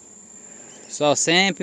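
A bee smoker puffs out smoke with loud bursts of hissing air.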